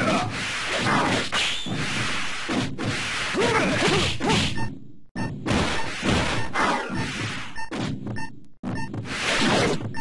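Swords slash and clash in quick strikes.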